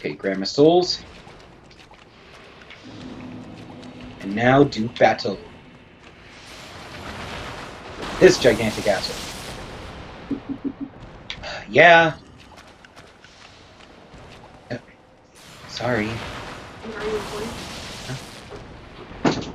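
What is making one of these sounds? A young man talks casually into a microphone.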